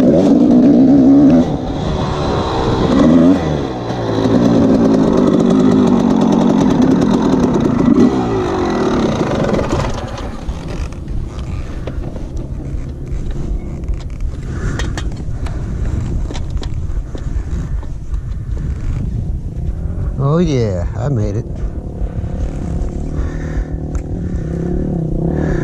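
A dirt bike engine revs loudly up close and rises and falls in pitch.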